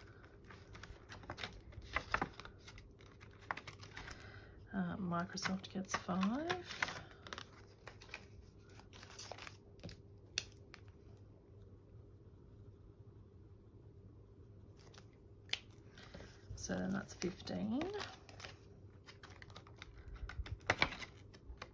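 Paper cards rustle and flap as they are handled.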